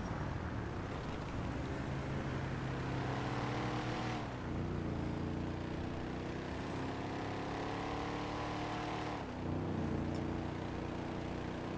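A car engine roars steadily, rising in pitch and dropping sharply as gears shift.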